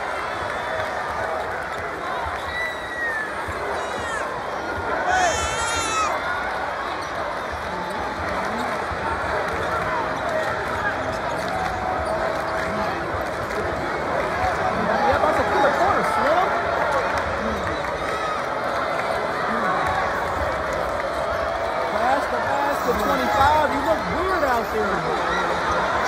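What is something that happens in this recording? A large crowd cheers and shouts loudly in an echoing arena.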